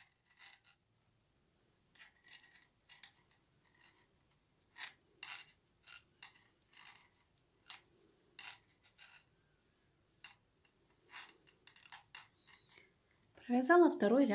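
Metal knitting needles click and tap softly against each other.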